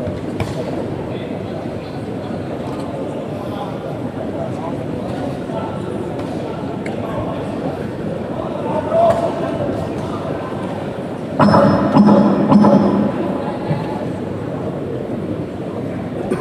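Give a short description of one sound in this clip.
A large crowd murmurs and chatters steadily in a big echoing hall.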